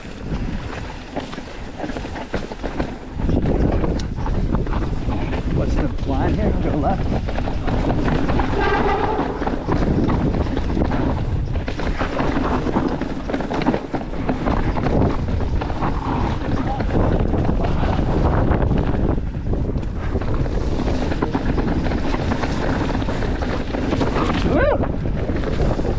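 Bicycle parts rattle over bumps.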